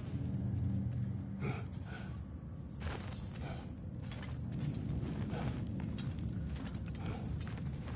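Heavy footsteps scuff and thud on a stone floor.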